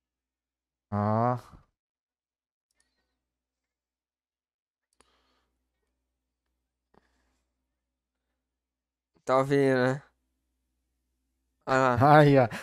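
A young man speaks in short, lively bursts through a headset microphone.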